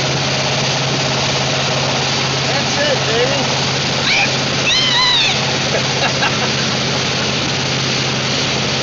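Water sprays and rushes loudly under a skier.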